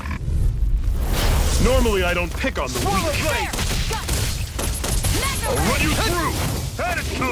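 Monsters growl and roar.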